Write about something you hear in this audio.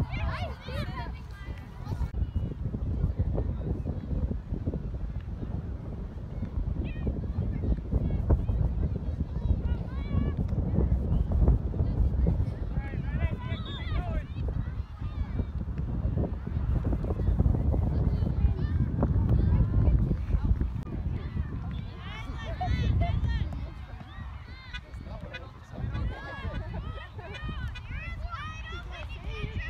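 Young girls shout and call out across the field.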